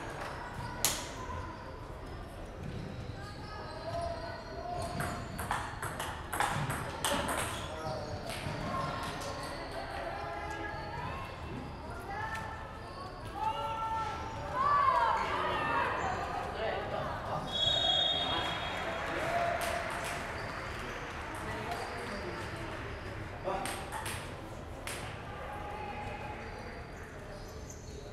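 Men talk in the background in a large echoing hall.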